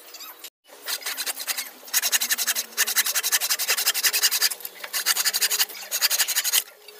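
A hand saw cuts through wood with quick rasping strokes.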